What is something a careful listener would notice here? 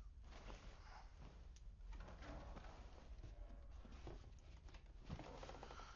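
Bedding rustles as a man gets out of bed.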